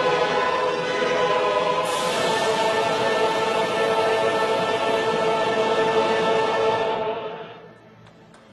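A large orchestra plays loudly.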